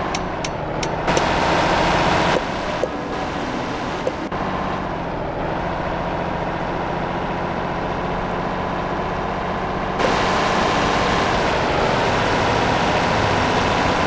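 A diesel semi-truck engine drones while driving on the road.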